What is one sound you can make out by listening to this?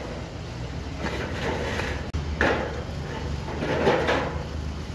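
Wet mortar scrapes and squelches under a trowel.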